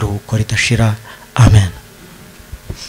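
A man speaks loudly through a microphone in an echoing room.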